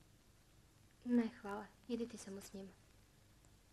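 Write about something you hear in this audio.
A young woman speaks briefly and calmly.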